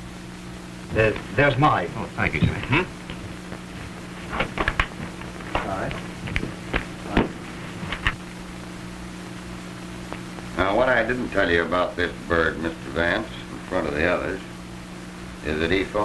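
A man speaks calmly, heard through an old, hissy film soundtrack.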